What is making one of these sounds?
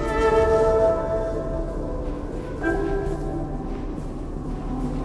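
A bright, musical chime rings out and slowly fades.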